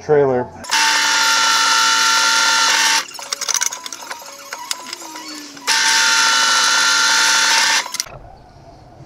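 A drill press motor whirs steadily in bursts.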